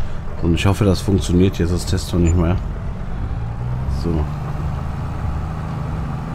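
A tractor engine hums steadily at idle.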